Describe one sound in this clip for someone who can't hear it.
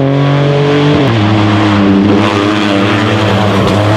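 A second rally car engine roars as the car approaches.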